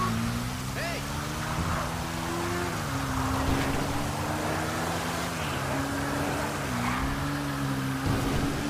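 A motorcycle engine hums steadily, its pitch dipping and rising as it changes speed.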